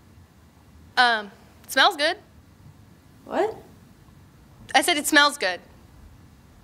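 A young girl speaks quietly in short phrases.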